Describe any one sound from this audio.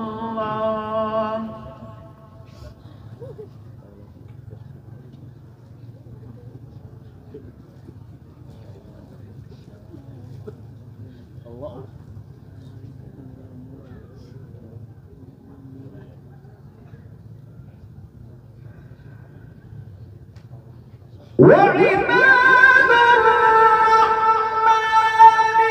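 A man sings loudly through a microphone, with a long drawn-out voice.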